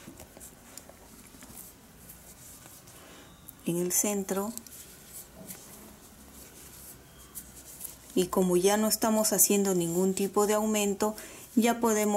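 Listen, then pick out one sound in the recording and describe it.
A crochet hook softly rustles and clicks through yarn.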